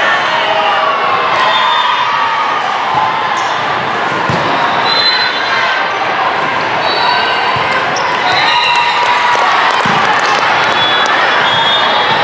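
A crowd of young women and spectators chatter and call out in a large echoing hall.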